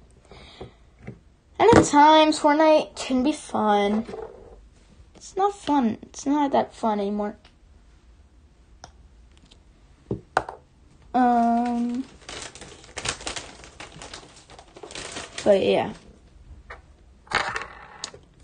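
Plastic toy bricks click and rattle as a hand handles them.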